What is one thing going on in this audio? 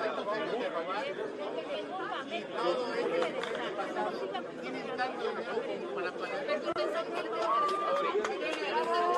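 A crowd of people chatters nearby.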